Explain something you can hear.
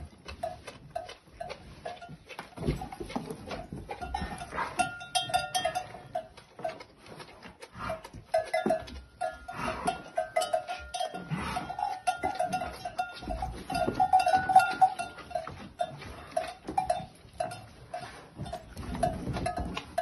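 A calf suckles noisily at a cow's udder, with rhythmic slurping.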